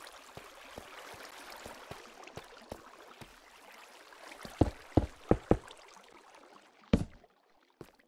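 Water flows and splashes.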